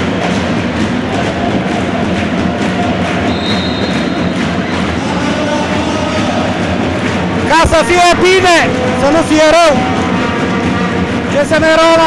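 A handball bounces on a wooden floor in a large echoing hall.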